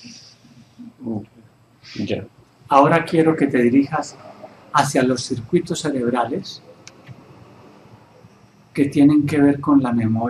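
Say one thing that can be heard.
An older man speaks calmly up close.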